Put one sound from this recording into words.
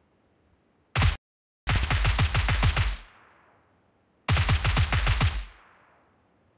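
A rifle fires rapid bursts of shots.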